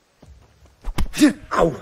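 A man calls out sharply at close range.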